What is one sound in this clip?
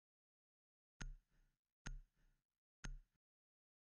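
Short electronic beeps tick off a countdown, about once a second.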